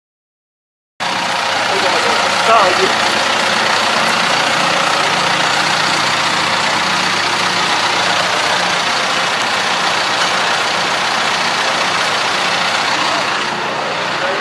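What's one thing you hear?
A tractor engine runs with a steady, loud rumble.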